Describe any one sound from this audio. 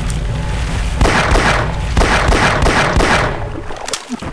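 A pistol fires several sharp shots that echo.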